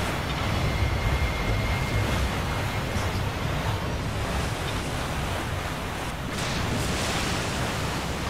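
A motorboat engine roars steadily.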